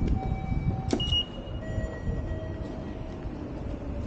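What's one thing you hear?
A ticket gate beeps.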